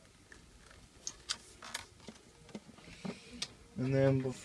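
Small metal parts click and tap as hands handle them.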